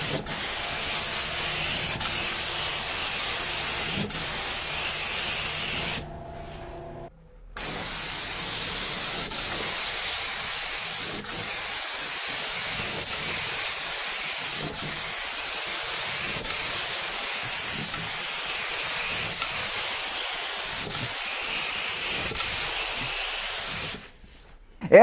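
A spray gun hisses steadily as it sprays paint.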